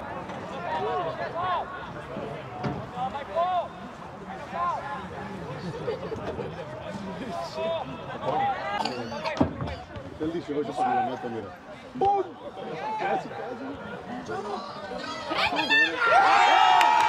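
Young men shout to each other on an open field.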